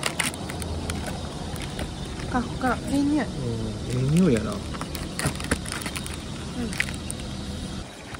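Plastic film crinkles as it is peeled back.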